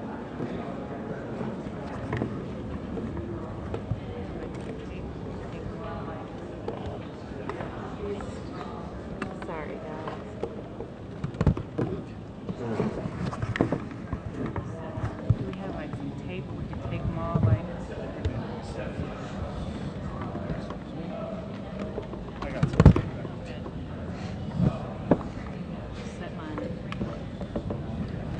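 Several men talk quietly nearby.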